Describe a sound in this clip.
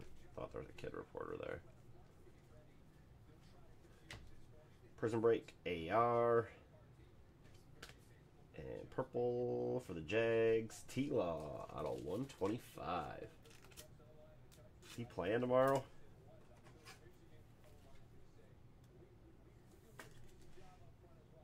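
Trading cards shuffle and rustle in hands.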